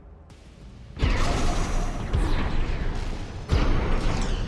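Rocket thrusters roar loudly in sudden bursts.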